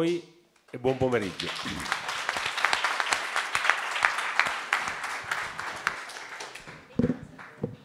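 An audience applauds in a hall.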